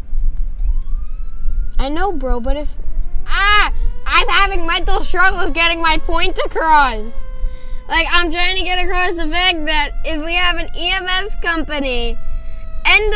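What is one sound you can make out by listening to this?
A fire truck siren wails and rises and falls in pitch.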